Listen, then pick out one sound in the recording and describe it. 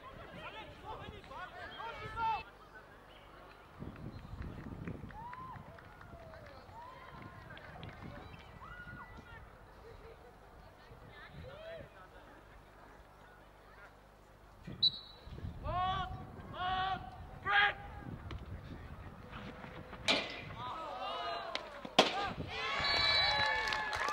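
Teenage boys shout to each other outdoors.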